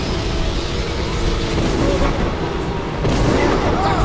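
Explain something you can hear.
A dragon breathes fire with a loud roaring rush.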